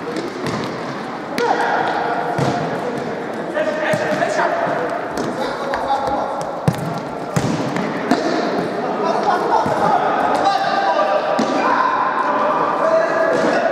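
Players shout and call out to each other in a large echoing hall.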